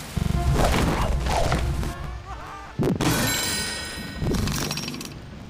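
Bright game chimes ring out in quick bursts.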